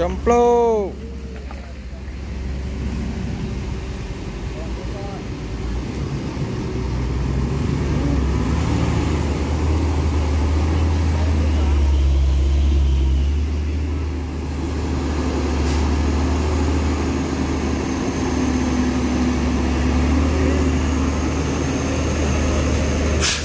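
Heavy truck engines rumble and idle close by.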